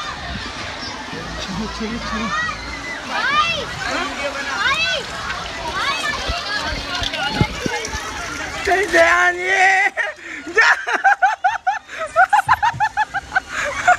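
Children shout and scream excitedly, echoing inside a tube.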